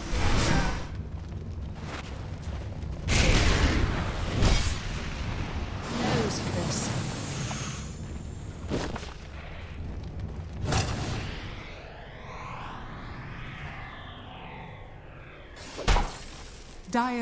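Magic blasts and impacts crackle and boom in short bursts.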